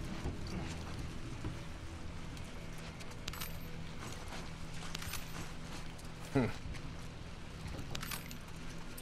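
A young man speaks quietly into a close microphone.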